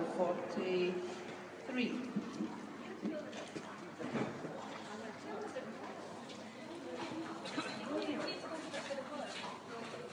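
Hooves thud softly on sand in a large echoing hall.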